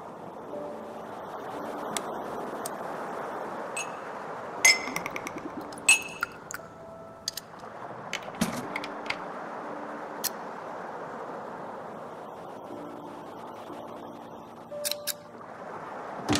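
Soft chimes and sparkling tones ring out as objects are picked up.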